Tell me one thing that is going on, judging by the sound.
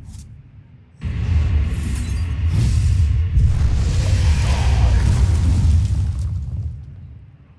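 A game's magical attack effect whooshes and rumbles.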